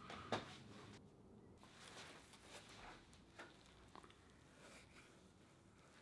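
Fabric rustles as a jacket is handled.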